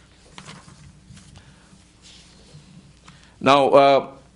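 Paper rustles and shuffles softly.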